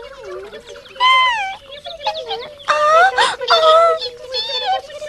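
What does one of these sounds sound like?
A high, squeaky voice chatters excitedly.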